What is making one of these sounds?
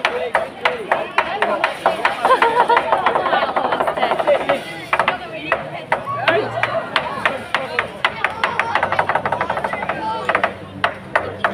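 Drums beat in a steady rhythm.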